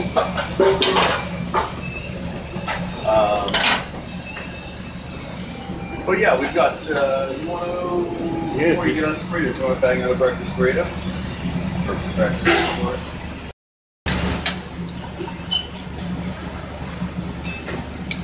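Meat sizzles and hisses on a hot grill.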